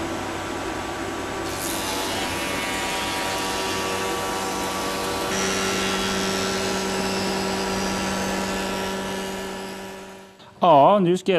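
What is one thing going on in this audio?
A woodworking machine hums and whines steadily while planing a board.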